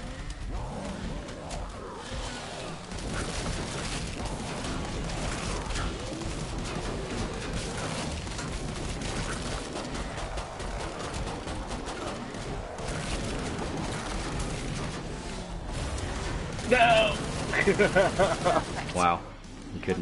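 Automatic gunfire rattles rapidly and without pause.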